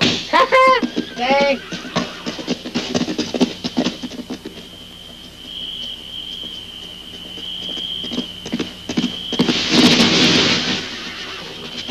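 Horses' hooves thud on grass.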